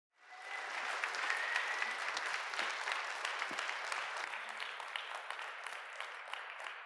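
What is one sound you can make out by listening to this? An audience applauds and cheers in a large echoing hall.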